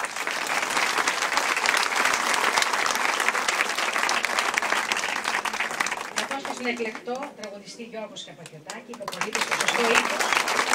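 A large audience claps and applauds loudly.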